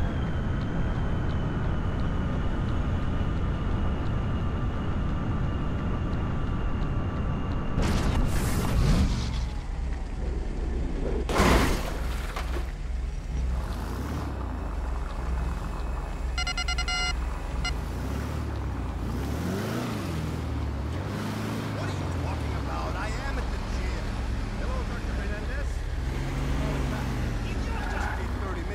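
A car engine hums and roars.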